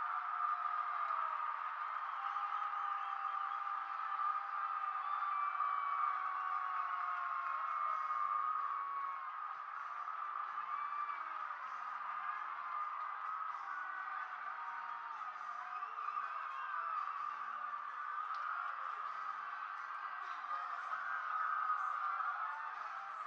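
A large stadium crowd cheers and roars loudly throughout.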